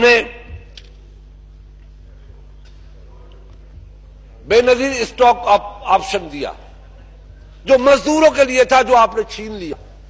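An older man speaks forcefully into a microphone, with long pauses.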